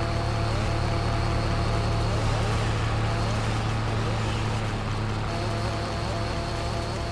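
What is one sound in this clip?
A chainsaw engine drones steadily.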